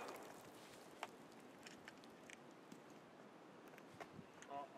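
Shells click as they are loaded into a shotgun.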